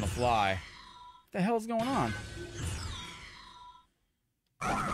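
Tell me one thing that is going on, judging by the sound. Fighting game sound effects whoosh and ring out.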